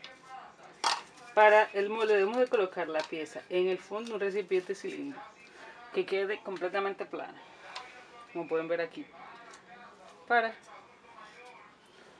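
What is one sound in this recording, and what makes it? A thin plastic cup crinkles and taps as it is handled.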